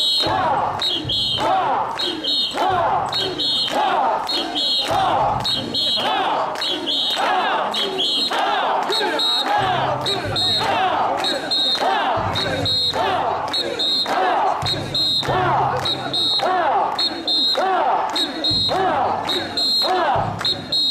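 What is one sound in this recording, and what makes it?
A large crowd of men chants loudly in a steady rhythm, outdoors.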